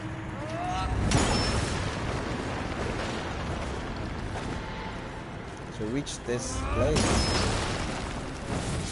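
A heavy stone block shatters with a loud crash.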